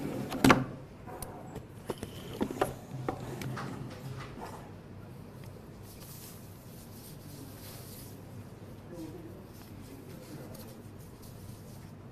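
Papers rustle and shuffle close by.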